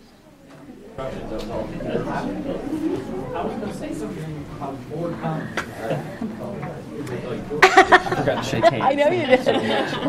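A crowd of people chatters in a large room.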